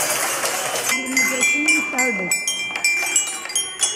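A child taps a toy xylophone with mallets, ringing bright notes.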